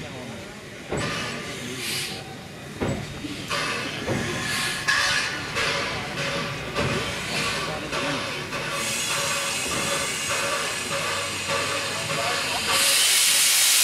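A steam locomotive chuffs slowly in sharp bursts.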